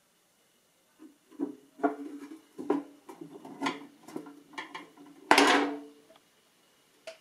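A wooden cover knocks and scrapes as it is lifted off a machine.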